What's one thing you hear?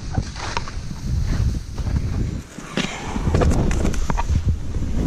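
Skis hiss and swish through deep powder snow.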